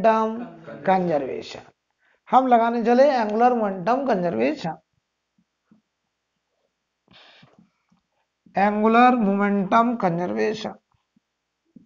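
A man speaks calmly nearby, explaining in pauses.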